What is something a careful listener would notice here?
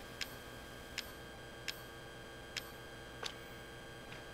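Menu selection clicks sound several times.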